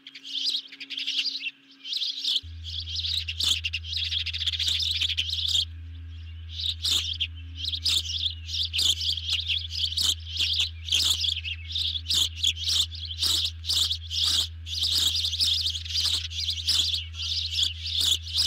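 An osprey gives repeated high, piercing chirps close by.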